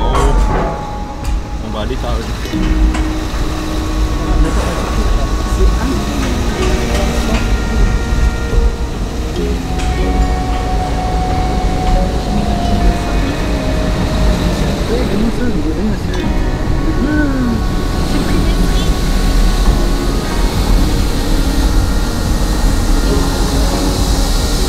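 A car engine rumbles low and steady inside a large echoing hold.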